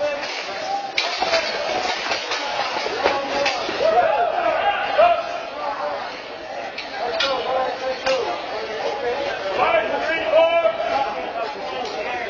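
Armoured fighters clash with weapons, with sharp knocks and clanks.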